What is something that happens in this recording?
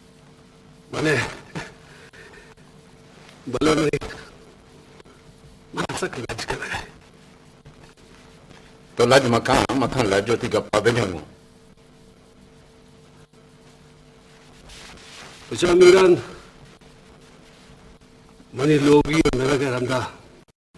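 A middle-aged man answers in a low, calm voice close by.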